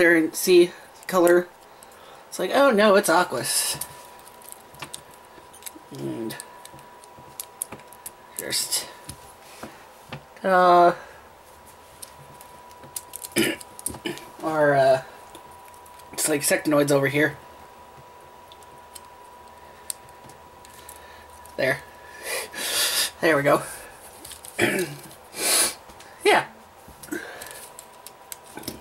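Plastic toy parts click and snap together in a pair of hands.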